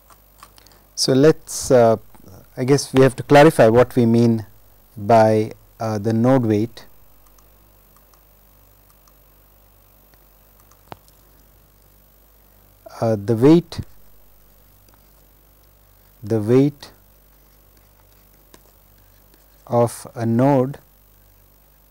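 A young man speaks calmly into a microphone, in short phrases with long pauses.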